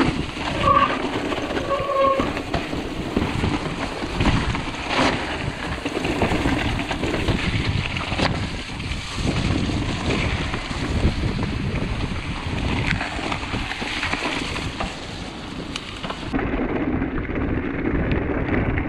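Bicycle tyres rumble and crunch over a rough dirt trail.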